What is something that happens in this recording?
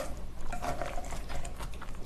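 Chopsticks clack against a pan.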